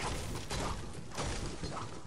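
A pickaxe chops into a tree.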